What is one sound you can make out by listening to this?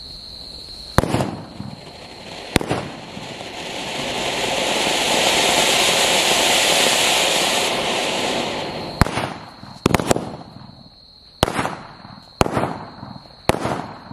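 Firework charges bang sharply outdoors.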